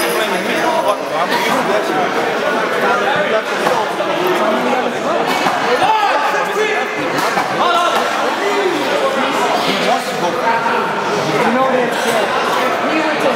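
Several men talk and call out loudly in a large echoing hall.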